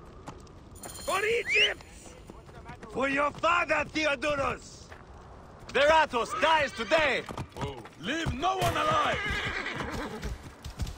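Men shout rallying cries.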